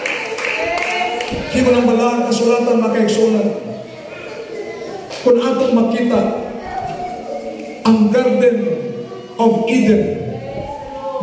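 A man speaks steadily into a microphone, heard through loudspeakers in an echoing room.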